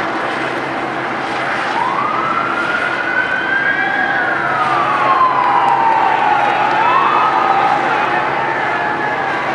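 A crowd murmurs and shouts in the street.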